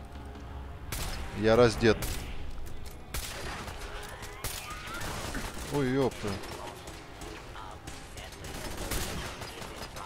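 A rifle fires sharp, cracking shots.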